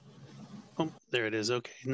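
A middle-aged man speaks through a headset microphone over an online call.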